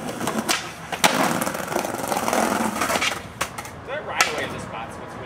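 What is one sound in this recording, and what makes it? A skateboard clacks against the ground.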